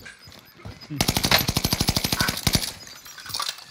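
An automatic gun fires in a rapid burst.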